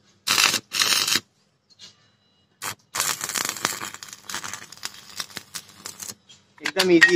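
An electric welding arc crackles and hisses in bursts.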